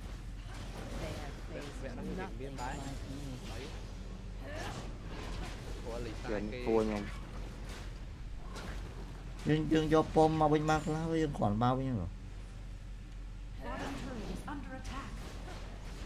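A young man talks quietly close to a microphone.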